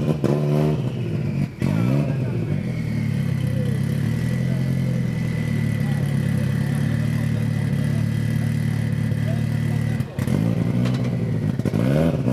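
A car engine idles with a loud, lumpy rumble.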